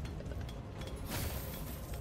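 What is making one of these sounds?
A creature is struck with a heavy blow.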